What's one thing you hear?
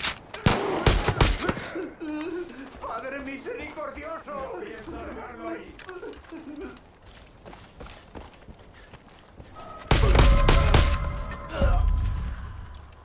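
Rifle shots ring out in quick bursts.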